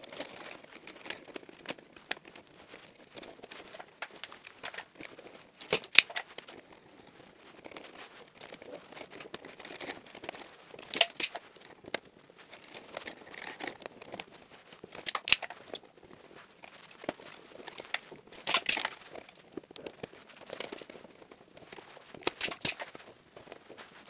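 Wires rustle and scrape as hands handle them.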